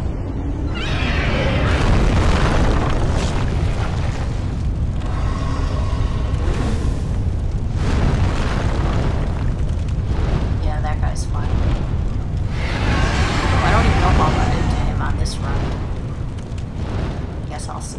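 Large wings beat heavily through the air.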